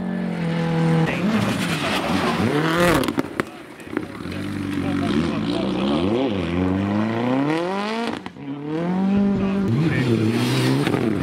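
A second rally car engine roars and pops as it accelerates past.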